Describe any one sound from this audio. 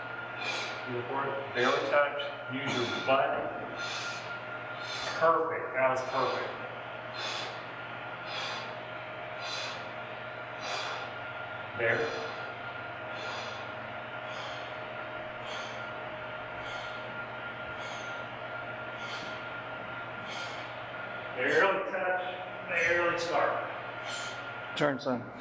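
A weight machine clanks softly in a steady rhythm as legs push.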